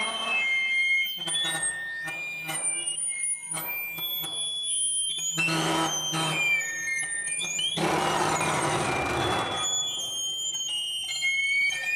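Electronic keyboard tones warble and glide over a droning hum.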